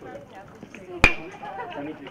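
An aluminium bat strikes a baseball with a sharp ping.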